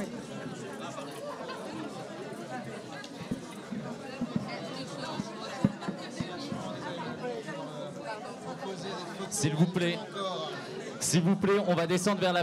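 A crowd chatters and murmurs.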